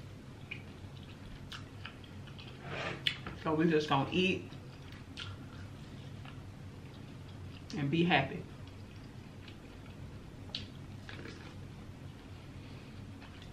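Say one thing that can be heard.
A young woman chews and eats noisily close to a microphone.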